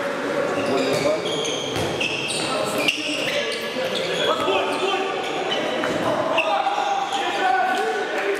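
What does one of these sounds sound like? Sports shoes squeak on an indoor court floor.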